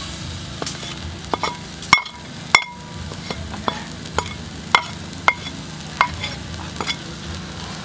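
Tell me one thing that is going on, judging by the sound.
Chopped ingredients splash into hot oil.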